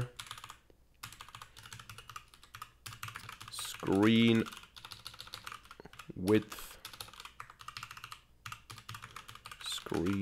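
Computer keys clatter quickly as someone types.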